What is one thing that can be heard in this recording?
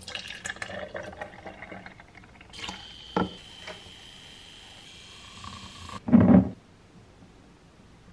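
Liquid pours into a glass.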